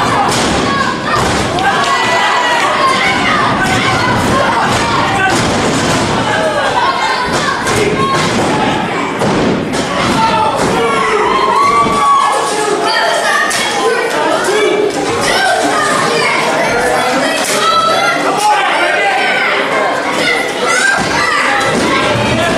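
A crowd of men and women shouts and cheers in an echoing hall.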